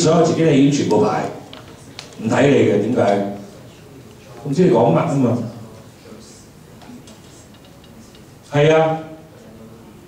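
A middle-aged man speaks calmly into a microphone in bursts, heard through a loudspeaker.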